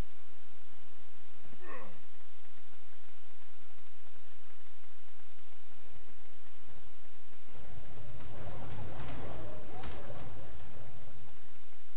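Footsteps rustle quickly through leafy plants.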